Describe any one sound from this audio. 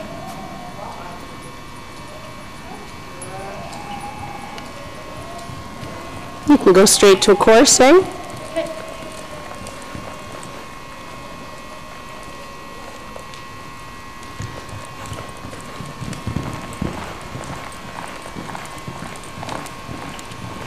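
A horse's hooves thud softly on soft ground in a steady trot.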